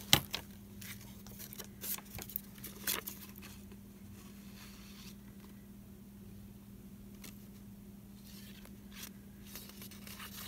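Paper rustles and crinkles under a hand.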